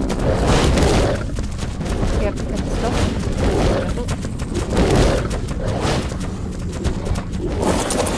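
Heavy footsteps thud on rock.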